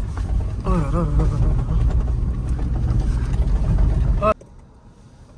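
A car rumbles loudly as it drives over bumpy sand.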